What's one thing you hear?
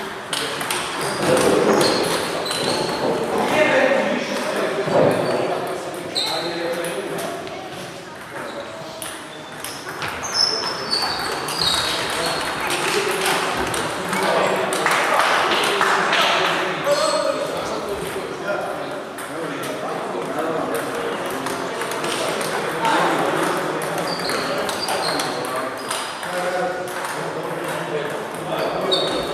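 Table tennis balls click on tables and paddles throughout a large echoing hall.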